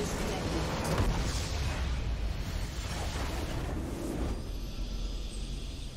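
A large structure in a video game explodes with a deep boom.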